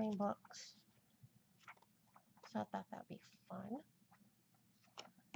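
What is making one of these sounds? Paper pages rustle softly as a book's pages are turned.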